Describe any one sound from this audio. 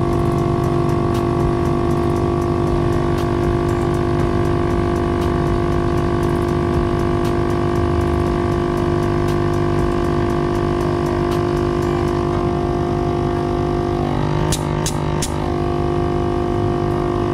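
An air compressor hums and rattles steadily.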